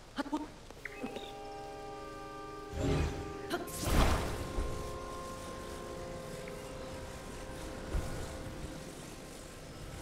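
A soft magical hum rings out steadily.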